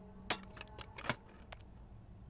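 A small wooden box lid clicks open.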